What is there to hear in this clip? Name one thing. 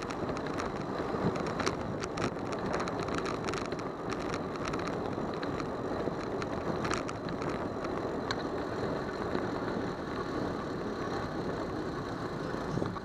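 Cars idle and roll along a busy road nearby.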